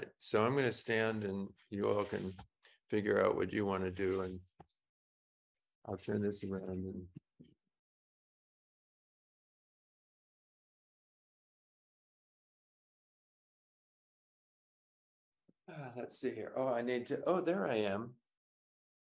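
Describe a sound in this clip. An elderly man speaks calmly through a microphone on an online call.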